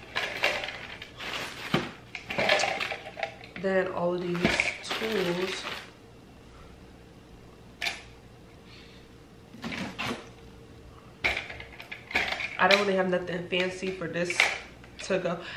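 Small items clatter as they are moved in a suitcase.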